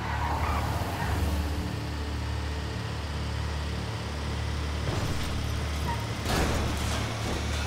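A heavy truck engine rumbles steadily as it drives along a road.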